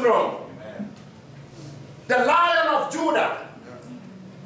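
A man preaches loudly and with fervour through a microphone in an echoing hall.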